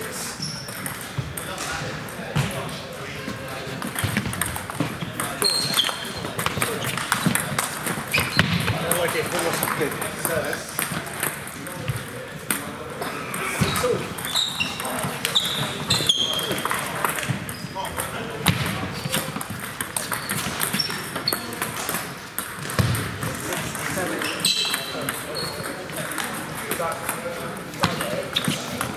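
A table tennis ball clicks back and forth off paddles and a table in a large echoing hall.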